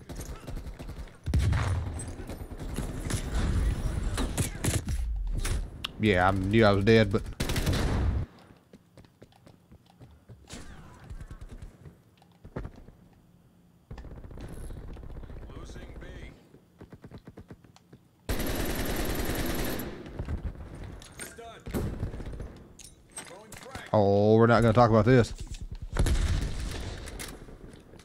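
Gunfire bursts from a rifle in rapid shots.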